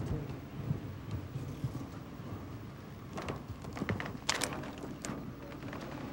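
Small items knock and rustle inside a car.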